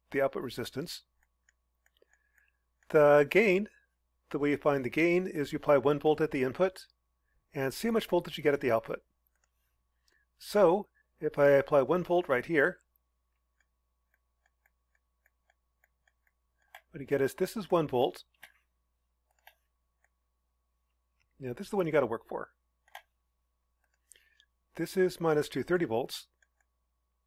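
A man speaks calmly into a close microphone, explaining in short phrases with pauses.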